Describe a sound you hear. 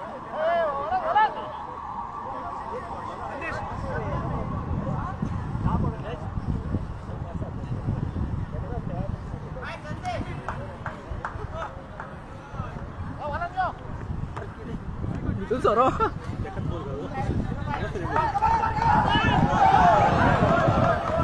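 Young men shout to each other in the distance across an open field.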